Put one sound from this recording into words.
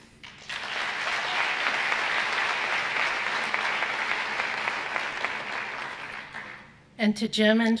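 An audience applauds in a large hall, then the applause fades.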